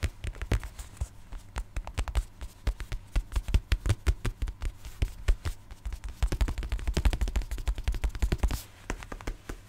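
Fingernails tap and scratch rapidly on a hard case right up close.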